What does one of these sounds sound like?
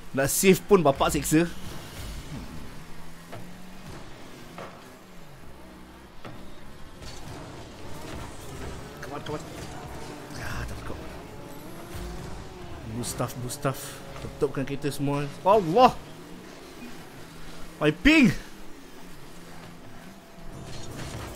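Game cars' engines hum and boost with whooshing sounds.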